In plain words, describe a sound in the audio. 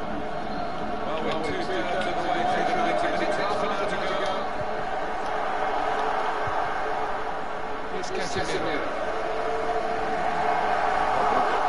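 A large stadium crowd cheers and murmurs steadily.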